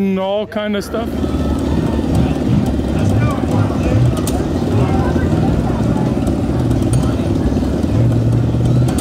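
A monster truck engine roars loudly outdoors.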